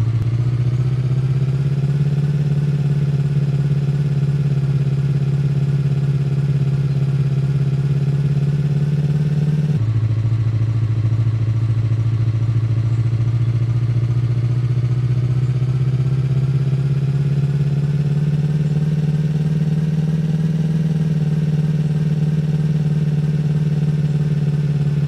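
A vehicle engine hums steadily as it drives along a rough track, changing pitch slightly at times.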